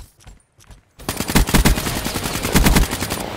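An automatic rifle fires in loud rapid bursts.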